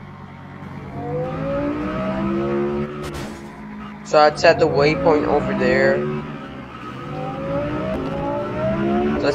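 A car engine revs up repeatedly, rising in pitch.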